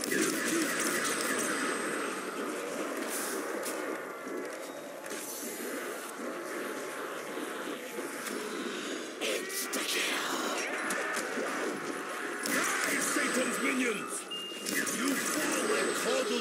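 A ray gun fires with sharp zapping blasts.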